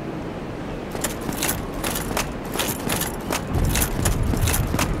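Armored footsteps clank on stone steps.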